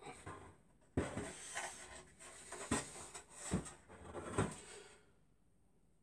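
A wooden frame knocks and scrapes as it is handled.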